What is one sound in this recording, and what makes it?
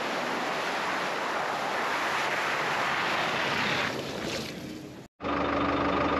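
A four-wheel drive engine roars as the truck drives past over a muddy track.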